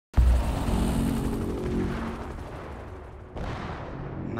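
Helicopter rotors thump loudly.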